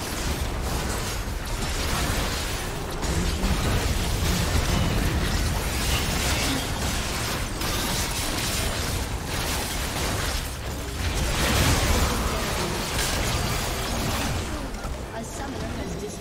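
Magical spell effects crackle, whoosh and clash in a busy battle.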